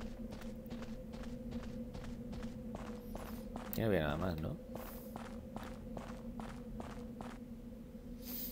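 Footsteps thud steadily on stone.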